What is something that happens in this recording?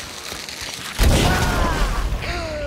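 A heavy blow strikes with a loud thud.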